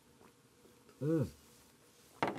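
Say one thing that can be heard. A man lets out a loud satisfied exclamation close by.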